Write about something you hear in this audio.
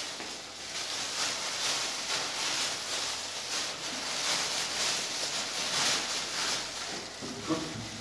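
A plastic bag rustles and crinkles in small hands.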